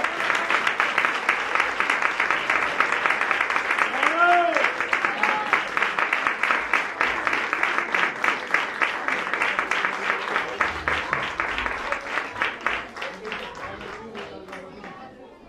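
An audience claps in a large hall, the applause slowly fading toward the end.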